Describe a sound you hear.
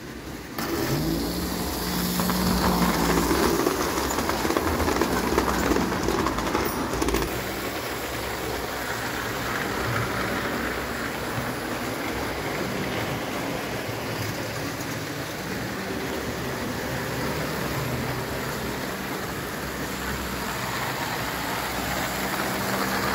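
Electric motors of toy locomotives hum steadily.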